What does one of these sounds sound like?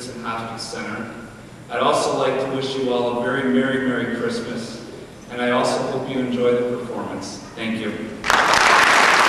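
A young man speaks into a microphone in a large hall.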